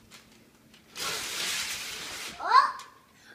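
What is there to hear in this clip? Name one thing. Tissue paper rustles loudly.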